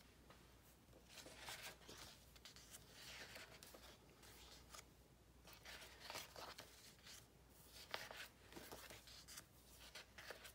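Sheets of paper rustle and flap as they are leafed through.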